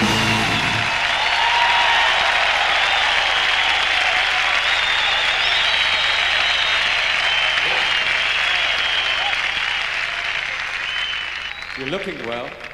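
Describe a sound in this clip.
A large crowd cheers and whistles loudly in a big hall.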